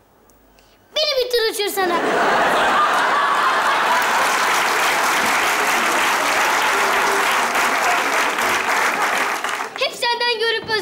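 A large audience laughs and applauds loudly.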